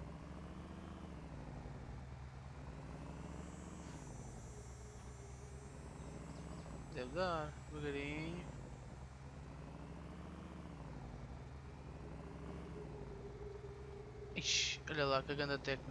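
A vehicle engine hums steadily as it drives.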